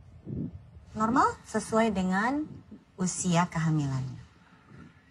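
A young man speaks with excitement.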